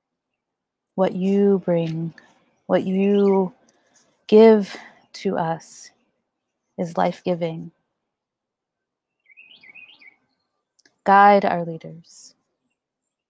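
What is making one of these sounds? A woman sings slowly and softly into a close microphone, with pauses between phrases.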